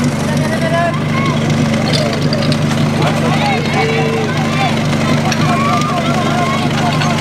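A pump engine runs with a steady loud drone.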